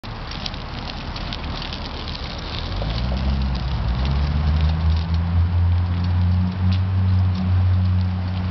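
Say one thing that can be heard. Small bicycle tyres roll and crunch over rough concrete.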